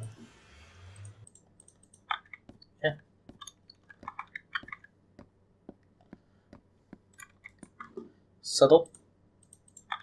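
A wooden chest creaks open and shut.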